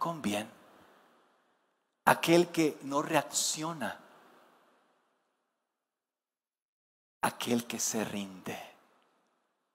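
A man speaks with animation into a microphone, echoing in a large hall.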